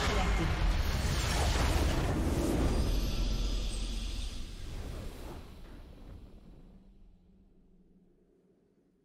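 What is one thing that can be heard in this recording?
A triumphant victory fanfare swells and slowly fades away.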